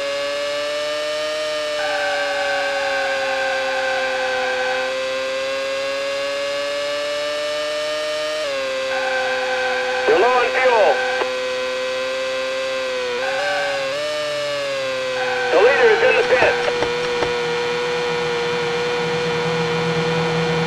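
A racing car engine whines steadily at high revs, shifting pitch as the car changes gear.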